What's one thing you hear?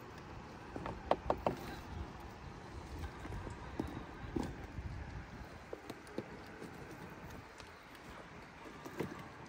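Small plastic tyres scrape and knock over rocks.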